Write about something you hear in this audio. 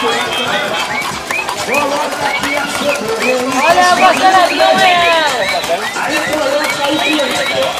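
Toy horses' motors whir and click as they walk.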